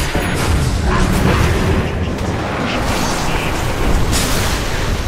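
Magic spells crackle and boom in a fast video game battle.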